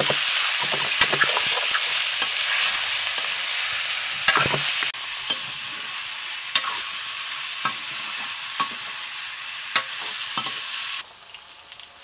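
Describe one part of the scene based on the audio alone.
Oil sizzles and hisses steadily in a hot pan.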